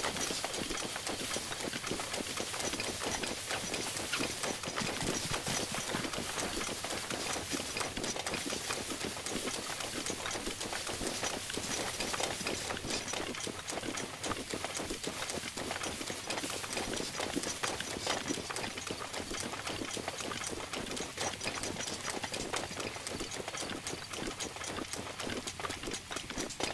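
Footsteps swish quickly through tall grass.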